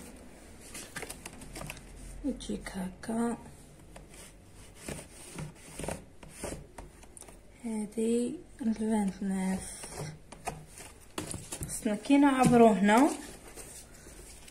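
Fabric rustles and scrapes under a hand.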